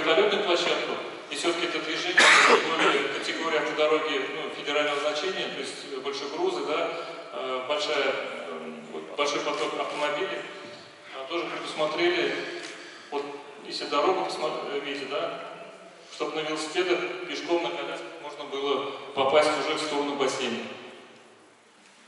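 A man lectures steadily through a microphone in a room with some echo.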